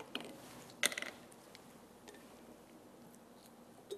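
A glass bottle cap clinks as it is opened.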